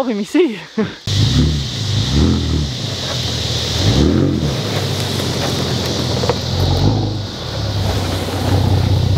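A truck engine rumbles and revs.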